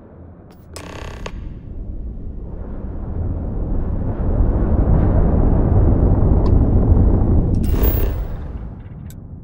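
A spaceship engine rumbles deeply, swelling louder and then dropping away.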